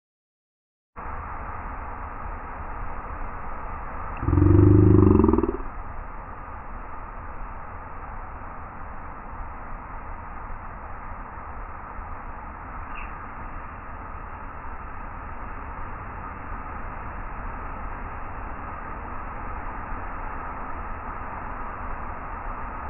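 Waves break and wash onto a beach.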